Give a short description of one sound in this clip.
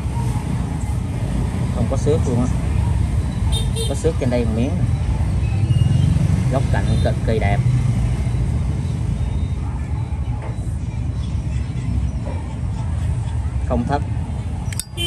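Fingers rub and turn a small metal lighter.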